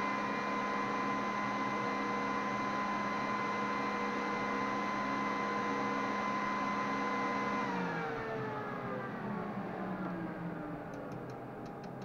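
A machine whirs with a steady high hum, then winds down and falls quieter.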